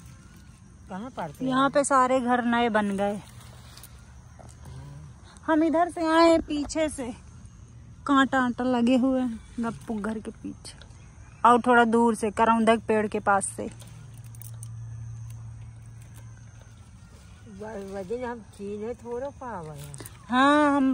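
An elderly woman speaks calmly close by.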